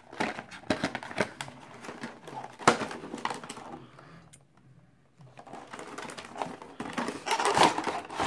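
Cardboard packaging rustles and scrapes as hands handle a box.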